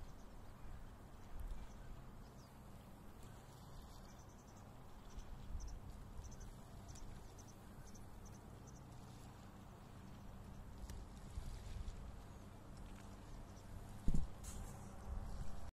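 Wind blows outdoors, buffeting softly with a low rumble.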